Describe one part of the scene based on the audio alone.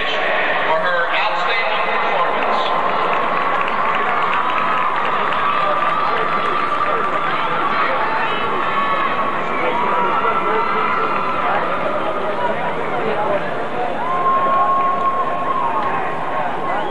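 A large crowd murmurs and chatters.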